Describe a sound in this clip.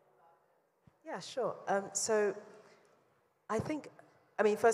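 A woman speaks with animation, close and loud through a microphone.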